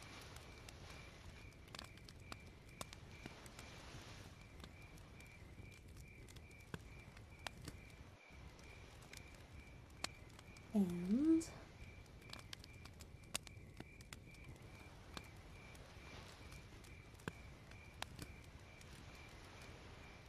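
Fire crackles and pops softly throughout.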